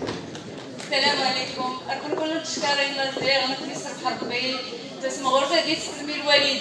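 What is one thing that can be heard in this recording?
A woman speaks through a microphone over loudspeakers in a large hall.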